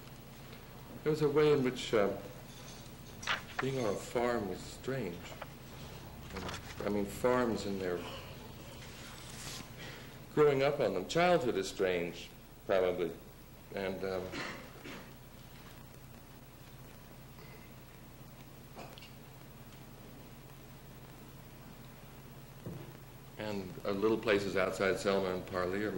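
A man speaks into a microphone in a room with a slight echo, pausing between phrases.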